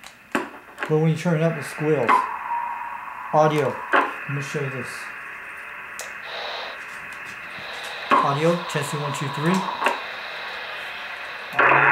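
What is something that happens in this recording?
A radio hisses with steady static.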